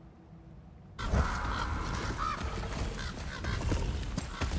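Outdoor forest ambience hisses and rustles.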